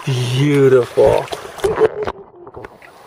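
Water swirls and splashes around a hand in a shallow stream.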